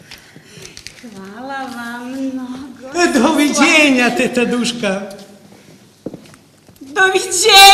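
A woman speaks with feeling, heard from a distance in a reverberant hall.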